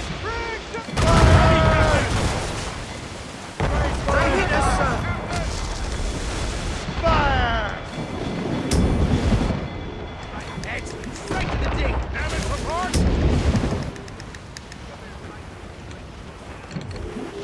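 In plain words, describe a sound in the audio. Cannons fire with heavy, rumbling booms.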